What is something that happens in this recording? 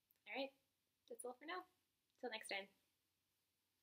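A young woman speaks briefly and calmly, close to the microphone.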